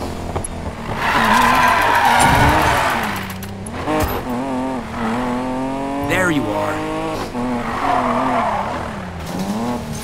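Tyres screech as a car skids sideways.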